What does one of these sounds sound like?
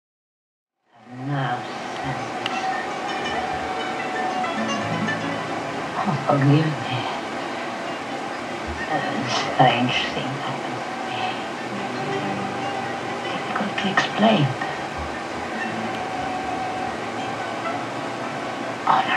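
A woman sings through a television speaker.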